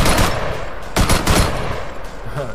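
A rifle fires several shots.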